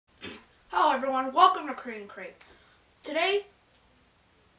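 A boy speaks with animation, close to a microphone.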